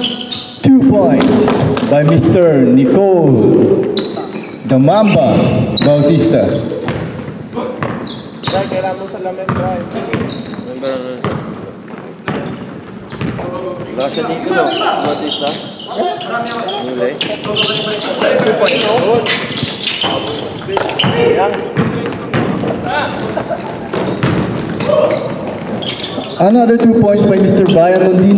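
Young men shout and call out across the gym.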